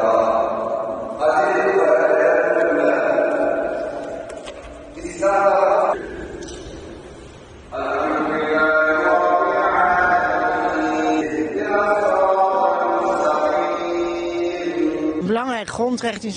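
A man chants a prayer through a loudspeaker in a large echoing hall.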